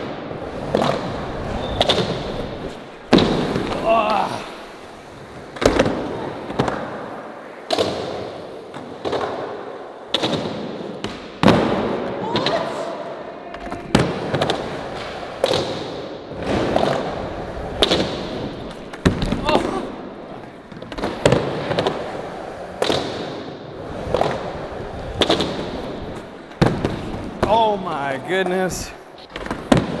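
A skateboard deck snaps and clacks down on landing.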